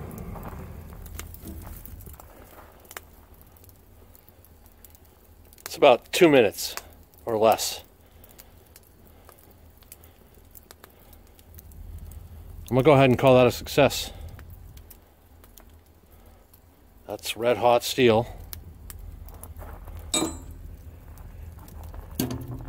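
A charcoal fire crackles and pops softly.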